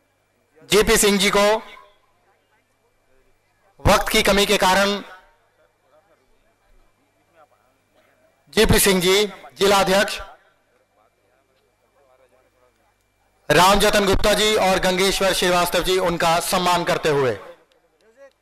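A man announces loudly through a loudspeaker in short bursts.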